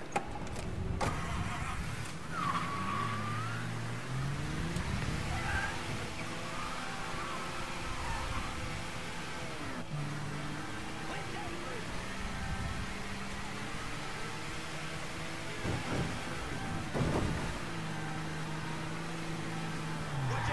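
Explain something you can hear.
A car engine starts and revs, rising and falling as the car speeds along.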